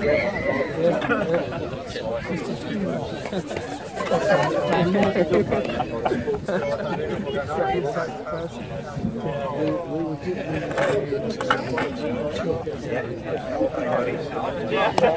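A crowd of men chatter and talk nearby, outdoors.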